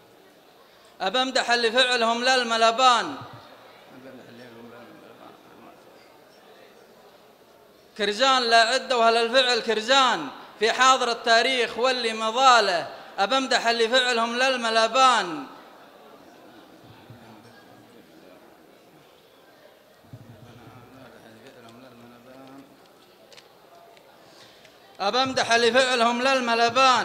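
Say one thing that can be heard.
A young man chants a poem loudly through a microphone, echoing in a large hall.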